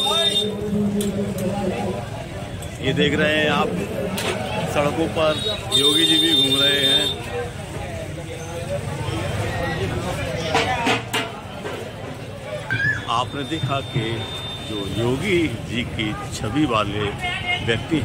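Men talk and call out close by in a busy crowd.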